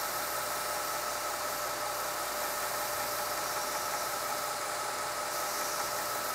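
A belt sander runs with a steady whirring hum.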